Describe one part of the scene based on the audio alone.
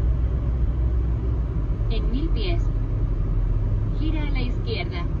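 A car engine hums low and steady with tyre noise on the road.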